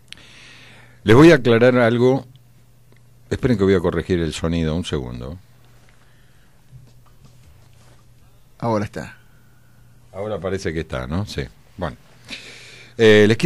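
An elderly man speaks calmly in short phrases.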